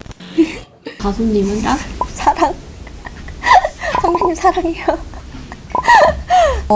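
A young woman speaks brightly and playfully into a clip-on microphone, close by.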